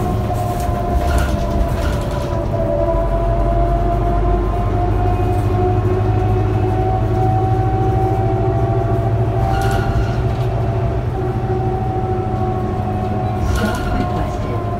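A bus body rattles and clatters over bumps.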